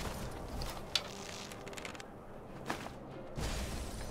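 A bow is drawn and an arrow is loosed with a sharp twang.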